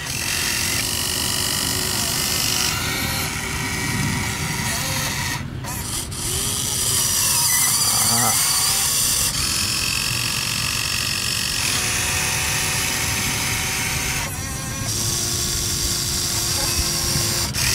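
Dirt pours and rattles into a toy truck's metal bed.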